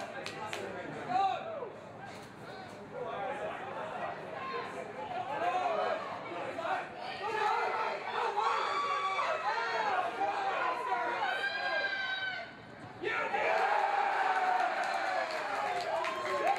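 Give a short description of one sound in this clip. Rugby players shout to each other on an open field.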